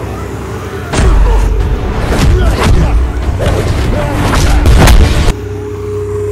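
Blows thud as two young men fight.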